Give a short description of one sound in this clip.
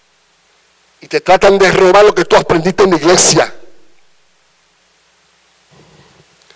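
A man speaks with emphasis into a microphone, heard through loudspeakers in an echoing hall.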